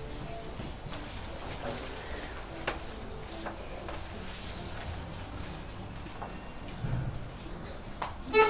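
An accordion plays softly.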